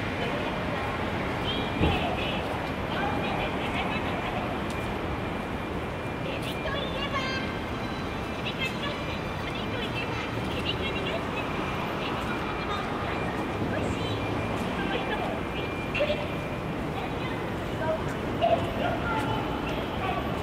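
Footsteps tap on paving close by.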